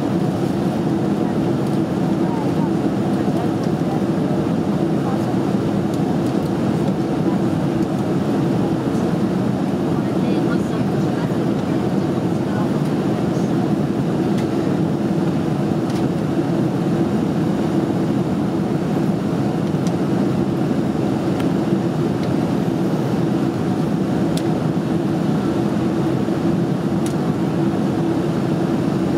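Jet engines roar with a steady, deep hum inside an airliner cabin.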